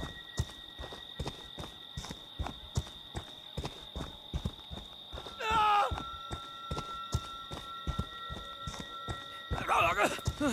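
Footsteps crunch steadily on dry leaves and dirt.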